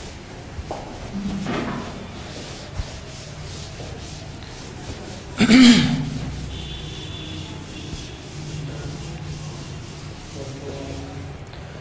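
A duster rubs across a board.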